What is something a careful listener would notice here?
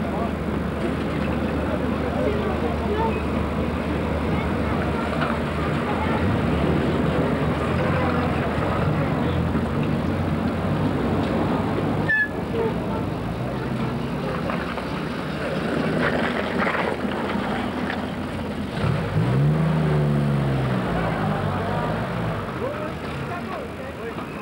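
Engines of vintage military trucks idle in a convoy.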